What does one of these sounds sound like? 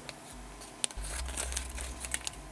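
Scissors snip through a plastic bag.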